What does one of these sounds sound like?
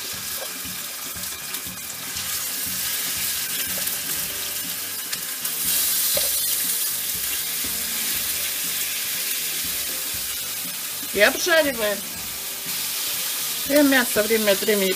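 Meat sizzles and crackles in hot oil.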